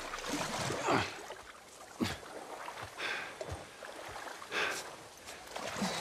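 Water drips and splashes as a man climbs out onto rocks.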